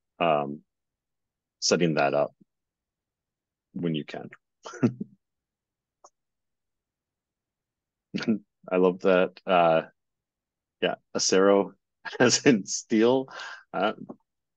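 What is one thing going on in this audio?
A man talks calmly through a microphone, in short phrases with pauses.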